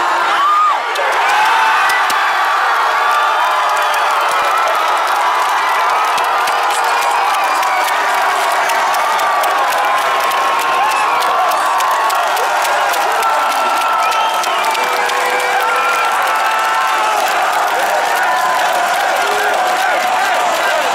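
A large crowd sings and chants together.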